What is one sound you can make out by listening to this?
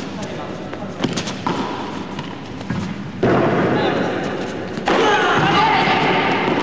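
A racket strikes a ball with sharp pops.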